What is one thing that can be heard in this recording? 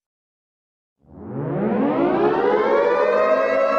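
An electric siren starts up and wails, rising in pitch.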